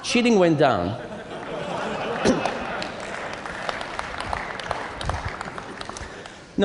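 An audience laughs and claps in a large hall.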